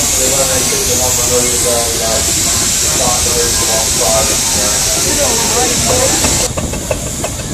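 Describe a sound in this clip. A steam engine hisses steadily.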